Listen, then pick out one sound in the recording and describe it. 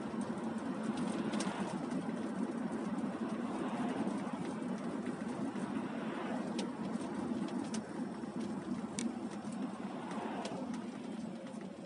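Oncoming cars swish past on the wet road.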